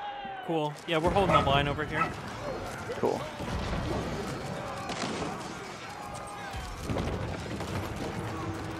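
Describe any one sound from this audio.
Weapons clash and clang in a battle.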